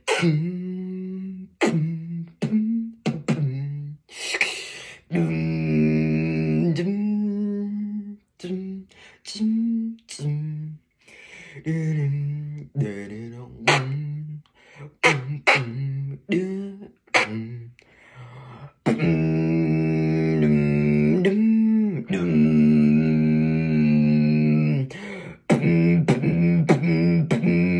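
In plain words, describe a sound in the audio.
A teenage boy sings loudly and close by, with long held notes.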